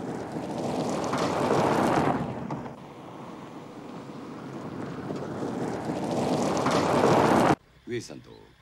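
A car drives past over gravel with tyres crunching.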